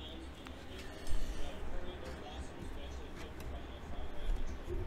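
Plastic card cases click and tap against each other on a table.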